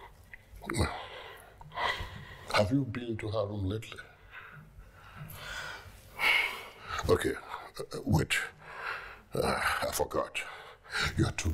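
A middle-aged man speaks in a low, tense voice close by.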